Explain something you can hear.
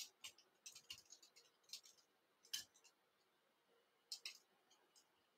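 Thread rustles and ticks softly as it is wound onto a hook by hand.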